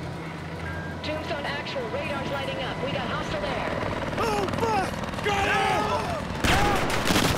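A man speaks urgently over a radio.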